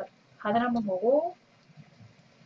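A woman speaks up briefly and with animation, close to a microphone.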